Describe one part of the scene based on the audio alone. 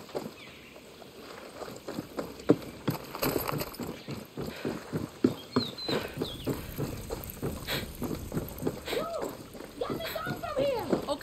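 Footsteps thud on hollow wooden stairs and boards.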